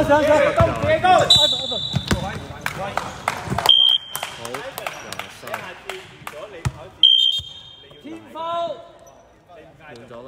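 A basketball bounces on a wooden floor with thuds.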